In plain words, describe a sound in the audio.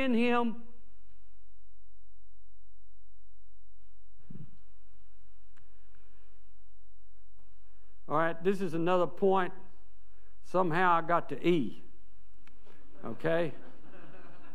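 An elderly man speaks slowly and deliberately through a microphone in a large echoing room.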